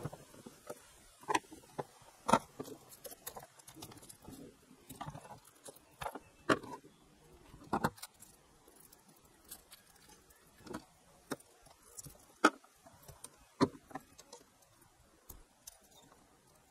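Pliers snip and click sharply against metal.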